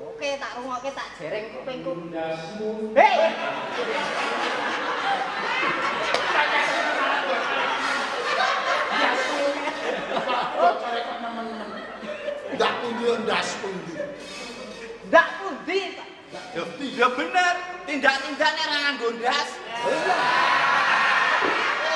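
A man speaks loudly in a theatrical voice on an echoing stage.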